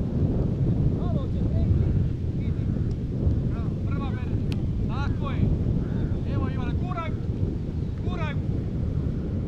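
Distant young players shout and call out to each other outdoors.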